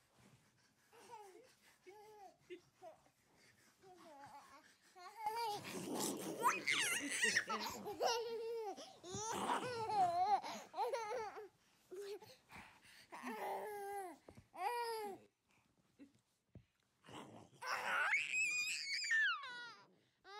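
A toddler babbles and squeals up close.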